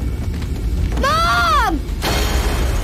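A young boy cries out sharply, close by.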